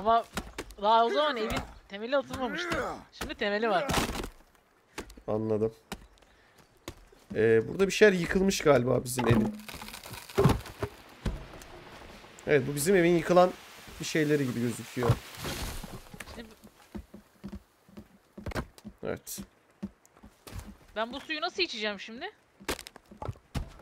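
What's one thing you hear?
Wooden planks knock and clatter.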